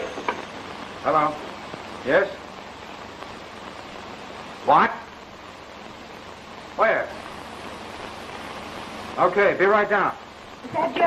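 A man speaks briefly into a telephone.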